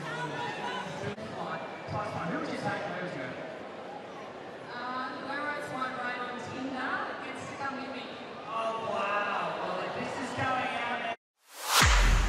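A large crowd applauds and cheers in a big arena.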